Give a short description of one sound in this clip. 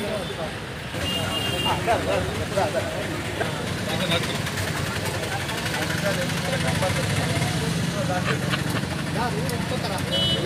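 Several men talk nearby in a small crowd.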